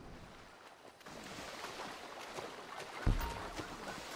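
Water splashes as someone swims and wades through it.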